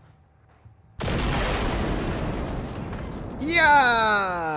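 An explosion booms nearby and rumbles away.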